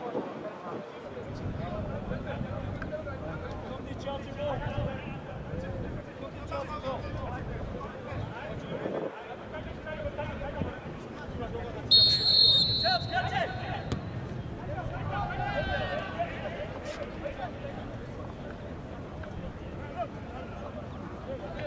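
Players shout to each other across an open outdoor pitch.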